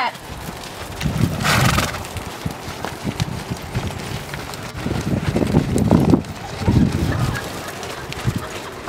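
Horses' hooves thud on soft sand as they walk and trot past.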